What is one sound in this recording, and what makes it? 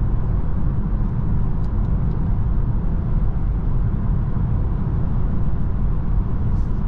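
A car's tyres roar steadily on a road, heard from inside the car.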